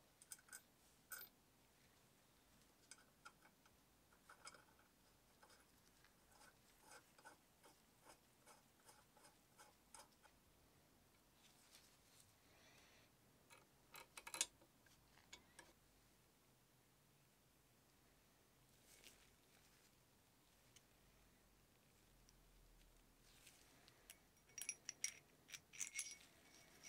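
Small metal parts click and clink.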